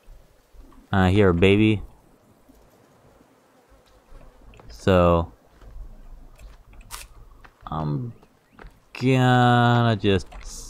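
Footsteps tread on grass and dirt.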